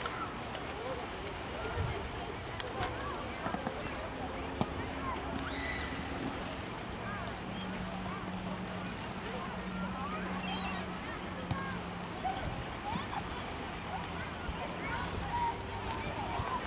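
Children and adults chatter and shout in a crowd outdoors, heard from a distance.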